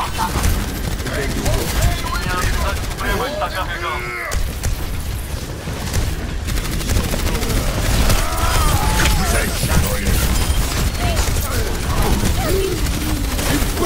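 Gunfire rattles rapidly in bursts.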